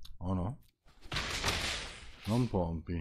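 A game sound effect whooshes briefly.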